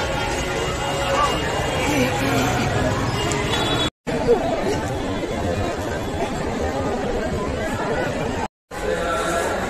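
A crowd of men and women murmur and talk nearby.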